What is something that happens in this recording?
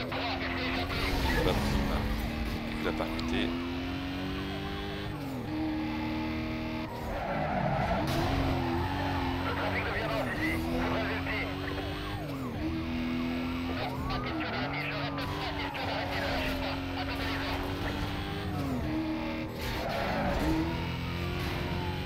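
A police siren wails close behind.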